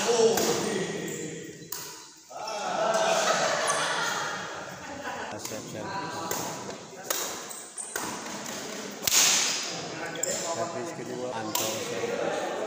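Voices of young men chatter in a large echoing hall.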